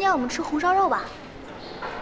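A young woman speaks brightly, close by.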